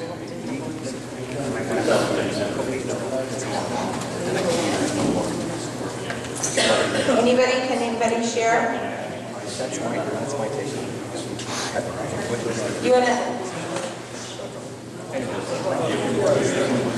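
A crowd of men and women chatter and murmur.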